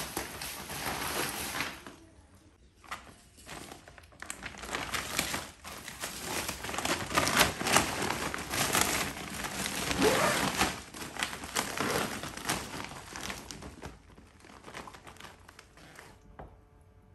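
A plastic bag rustles and crinkles as it is handled.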